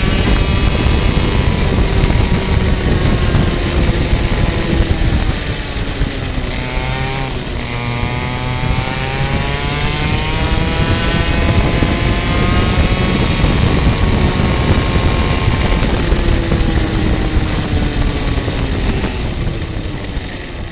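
A kart engine roars loudly up close, its pitch rising and falling as it speeds up and slows.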